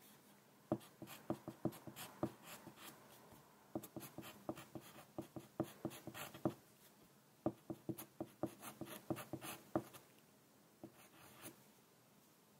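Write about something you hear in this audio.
A pencil taps and scratches on paper close up, in quick short strokes.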